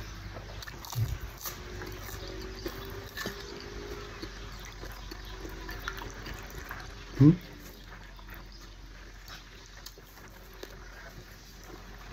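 A young man chews and slurps food close by.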